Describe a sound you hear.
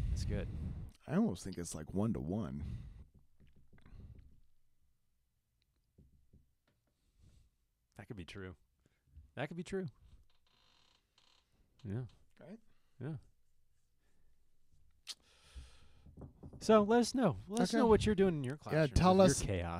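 A young man talks and laughs into a close microphone.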